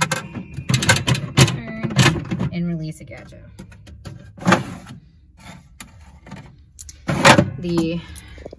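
Plastic parts click and clatter.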